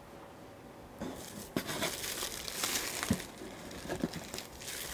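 Bubble wrap crinkles and rustles as hands pull it from a cardboard box.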